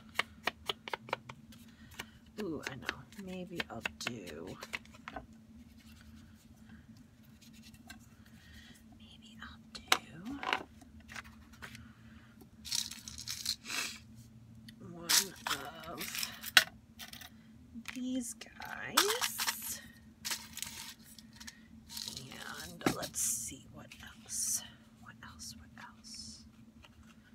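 Paper rustles and crinkles as it is handled.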